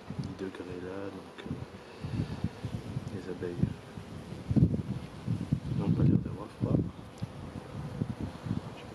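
Bees buzz and hum around an open hive.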